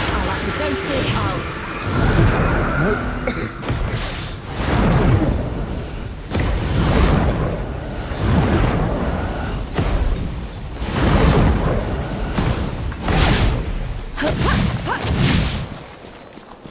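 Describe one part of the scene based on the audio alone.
Wind rushes past in loud, repeated gusts.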